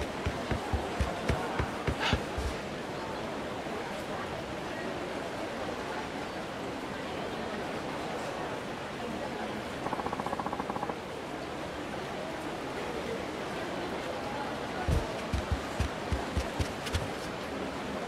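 Quick footsteps thud on wooden boards as a person runs.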